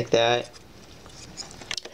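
Small plastic toy pieces click together in a hand.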